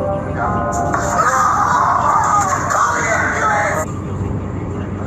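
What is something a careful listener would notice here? A man shouts loudly in panic.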